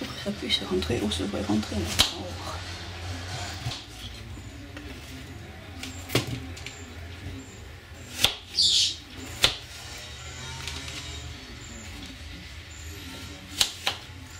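A knife cuts through apple on a plastic board.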